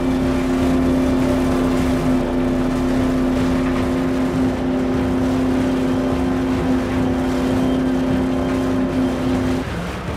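Tyres rumble and bump over rough grass.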